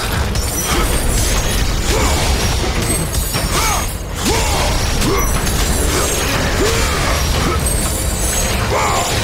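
Blades swing and energy blasts crackle in a game fight.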